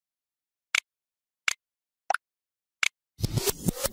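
Mouse buttons click sharply several times.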